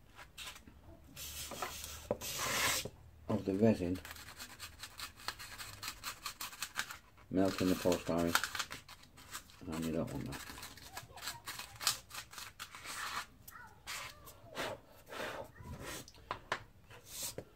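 Fingers scrape and tap against a small box.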